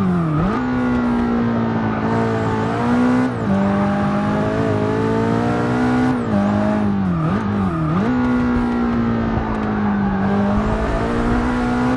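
Tyres squeal through tight corners.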